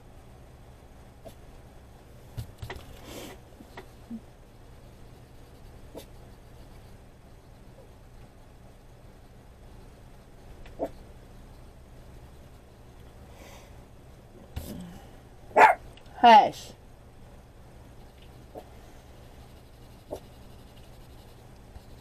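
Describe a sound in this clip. A colored pencil scratches softly on paper.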